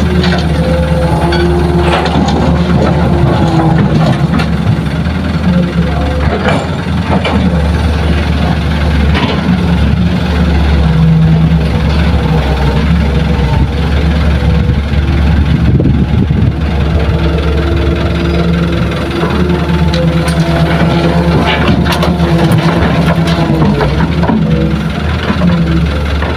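Rocks and earth clatter into a metal truck bed.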